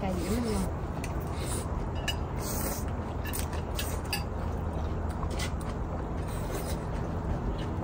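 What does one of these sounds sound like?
People slurp soup loudly, close by.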